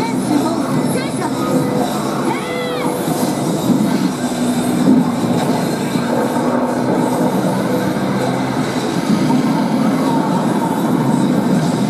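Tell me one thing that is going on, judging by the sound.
Game music plays loudly from an arcade machine's speakers.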